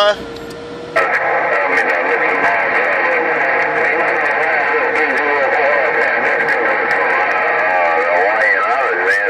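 A radio receiver crackles and hisses with static.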